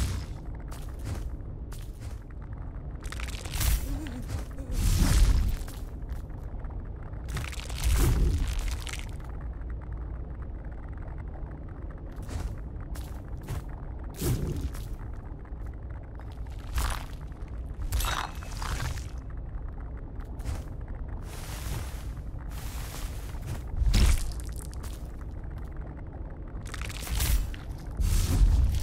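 Sword slashes whoosh and clang in a video game.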